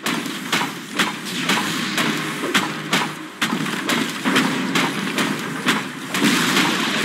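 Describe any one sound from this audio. Game spell effects and attacks crackle and thump in quick succession.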